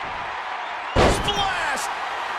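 A heavy body slams onto a ring mat with a loud thud.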